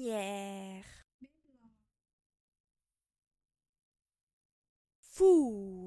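A young woman pronounces single words slowly and clearly close to a microphone.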